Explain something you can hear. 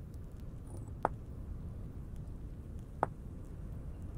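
A soft game menu click sounds twice.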